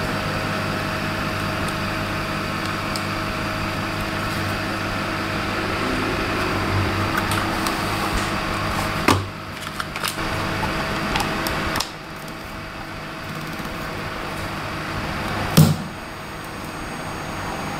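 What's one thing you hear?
Plastic rattles and clicks as a small box is handled.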